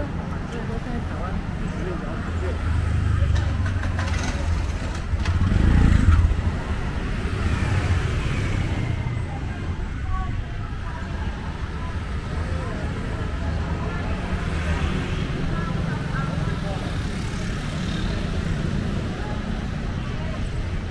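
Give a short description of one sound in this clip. Traffic hums steadily along a busy street outdoors.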